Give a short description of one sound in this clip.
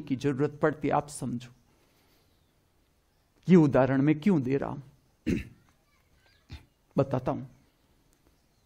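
An elderly man speaks calmly and slowly close to a microphone, with pauses.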